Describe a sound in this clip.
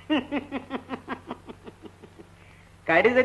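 A woman laughs in quick bursts.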